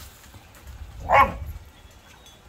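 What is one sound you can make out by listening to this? A dog barks once close by.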